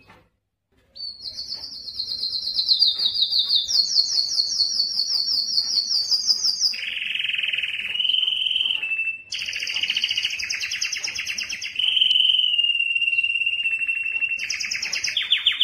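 A canary sings loud, rapid trilling phrases close by.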